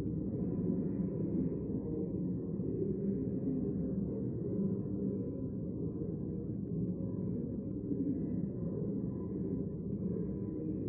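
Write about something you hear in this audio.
Many people murmur and talk quietly in a large echoing hall.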